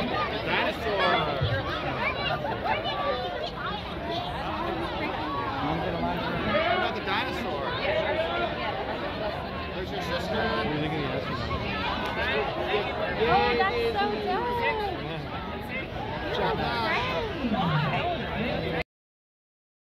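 A crowd of people chatters and calls out all around outdoors.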